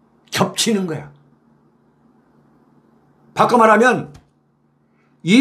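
A middle-aged man speaks calmly and closely into a microphone, in short bursts.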